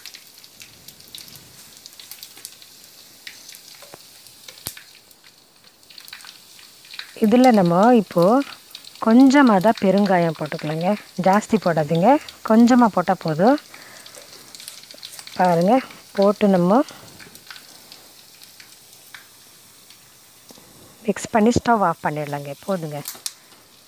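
Food sizzles gently in a pan.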